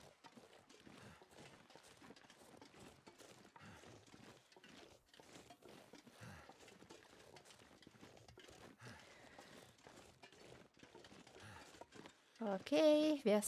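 Footsteps crunch steadily through deep snow.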